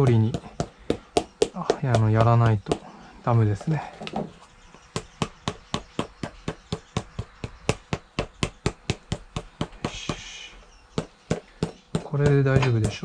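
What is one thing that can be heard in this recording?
A hammer taps rapidly on a shoe sole.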